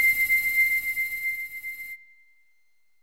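A bright, shimmering chime rings steadily and then fades away.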